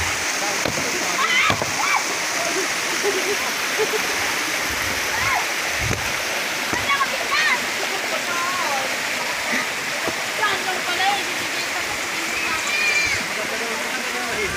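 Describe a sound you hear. Distant people talk and shout faintly.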